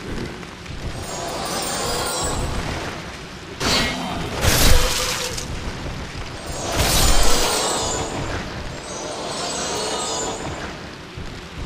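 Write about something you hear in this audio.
Creatures shriek and growl in combat.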